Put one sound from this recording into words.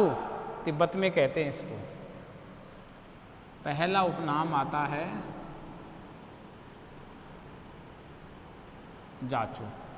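A man speaks in bursts, lecturing calmly nearby.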